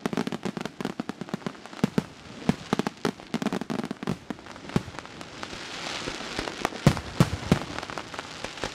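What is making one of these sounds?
Fireworks crackle and pop rapidly.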